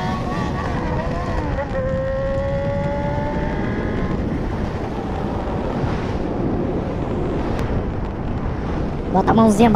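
A motorcycle engine drones and whines as it rides along.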